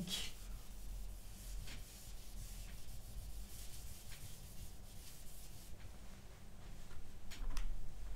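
A hand rubs and wipes across a whiteboard.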